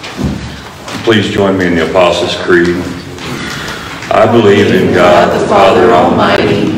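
A man speaks through a microphone in a large echoing room, reading out steadily.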